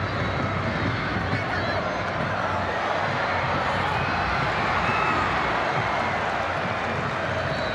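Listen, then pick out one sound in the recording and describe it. A large stadium crowd cheers and chants in an open-air stadium.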